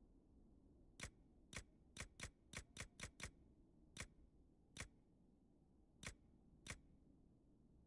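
Short, crisp menu clicks tick one after another.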